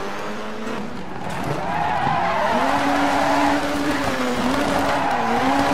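Tyres screech as a car slides.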